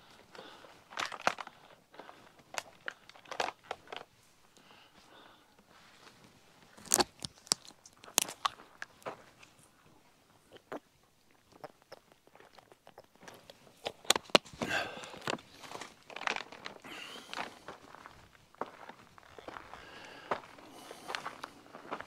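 Footsteps crunch on loose gravel and rocks.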